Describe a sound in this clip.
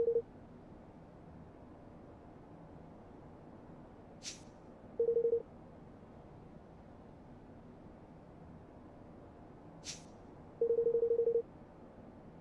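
Quick bursts of soft electronic beeps chirp.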